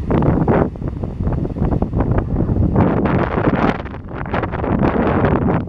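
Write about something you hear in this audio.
Small waves break and wash onto the shore.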